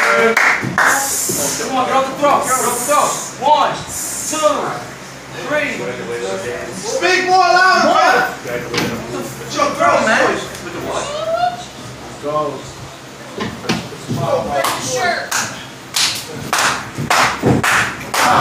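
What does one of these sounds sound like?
A man shouts with animation nearby.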